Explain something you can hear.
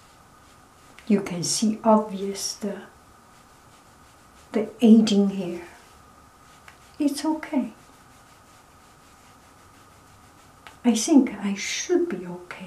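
A middle-aged woman speaks calmly and close by, in short bursts with pauses.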